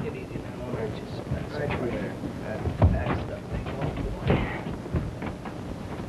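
Bodies scuffle and thump in a struggle, heard through an old, hissy film soundtrack.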